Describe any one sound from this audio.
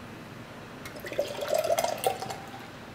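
Beer pours from a can into a glass mug and fizzes.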